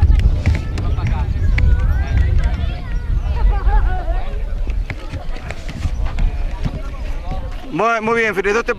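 Children chatter and shout in the open air.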